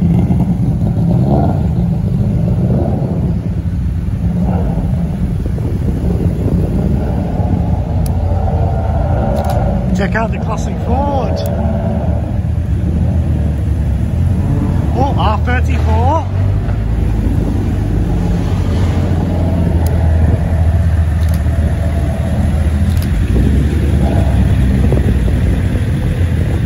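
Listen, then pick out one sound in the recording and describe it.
Engines of tuned hatchbacks rumble as the cars pull away one after another.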